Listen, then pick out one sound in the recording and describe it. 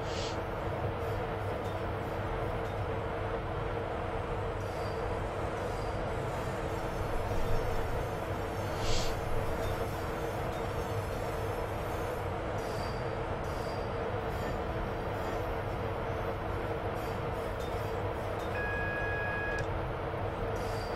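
A train engine hums and rumbles steadily along the rails.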